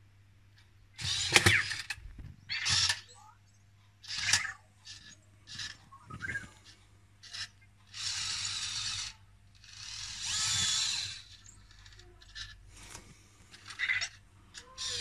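A small toy robot makes short electronic chirps and beeps.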